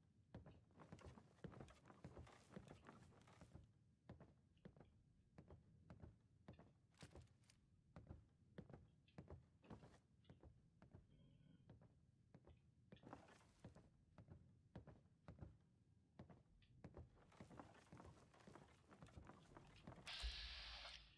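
Footsteps thud softly on stairs and a hard floor.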